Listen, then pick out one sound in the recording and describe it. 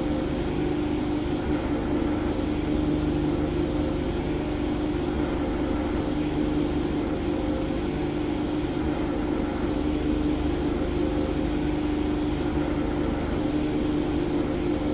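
A racing car engine idles steadily with a low hum.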